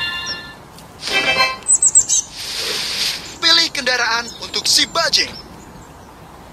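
A cheerful chime rings out.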